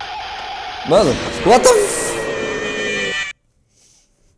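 A game's jumpscare screeches loudly and suddenly.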